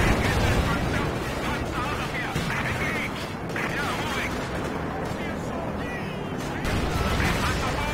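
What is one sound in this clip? Tank cannons fire with sharp bangs.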